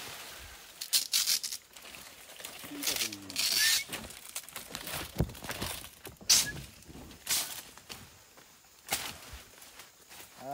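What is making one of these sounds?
Leaves and stalks rustle and crackle as plants are pulled and handled.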